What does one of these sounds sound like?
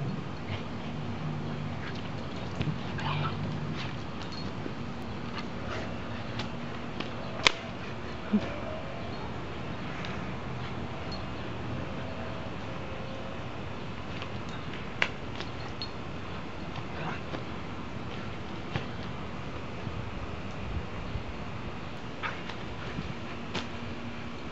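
A dog shakes and thrashes a toy on grass.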